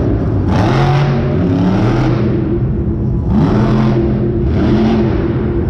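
A monster truck engine roars loudly, revving up and down.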